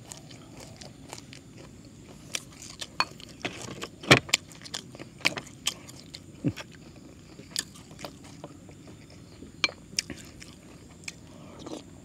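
A spoon clicks against a bowl.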